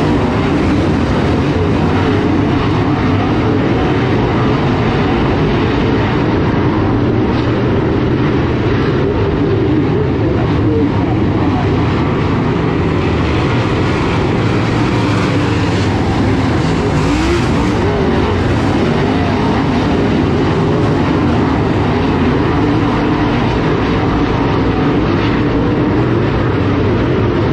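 Engines rev up and down as cars slide through the turns.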